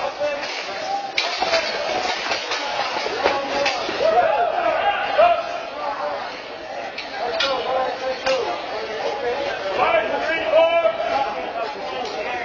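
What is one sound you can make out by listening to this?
A crowd of men and women talk and cheer in a large echoing hall.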